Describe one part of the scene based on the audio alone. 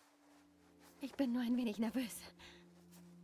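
A young woman speaks briefly and softly through a microphone.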